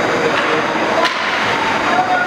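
A hockey stick cracks against a puck.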